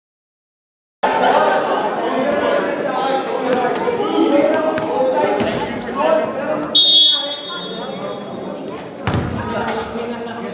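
Men chatter and call out in a large echoing gym.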